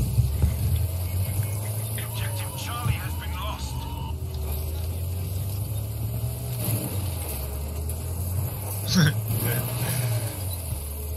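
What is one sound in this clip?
A tracked vehicle's engine rumbles and clatters steadily.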